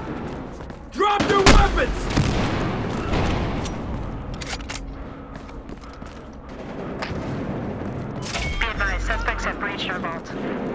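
Gunshots and explosions crack in a video game.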